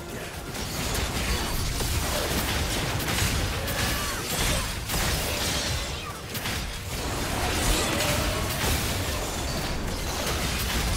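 Game spell effects whoosh, zap and crackle in a rapid fight.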